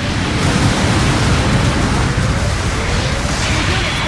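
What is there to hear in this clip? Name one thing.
A heavy gun fires in quick bursts.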